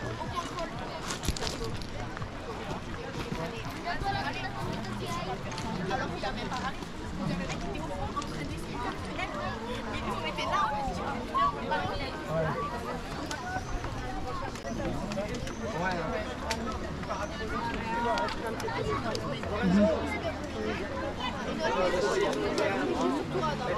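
A lively crowd of men and women chatters outdoors.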